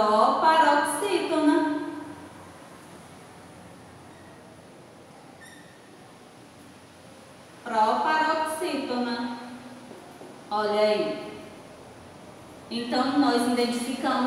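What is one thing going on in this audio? A young woman speaks clearly and calmly, close by, in short phrases with pauses.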